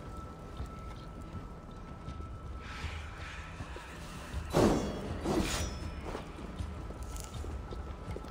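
A torch fire crackles close by.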